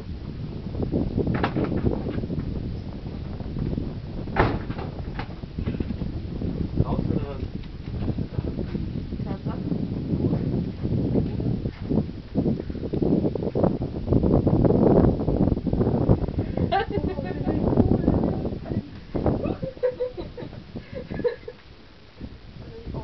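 Wind buffets the microphone in strong gusts outdoors.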